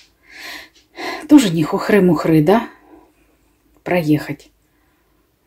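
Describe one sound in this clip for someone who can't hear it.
An elderly woman speaks calmly nearby.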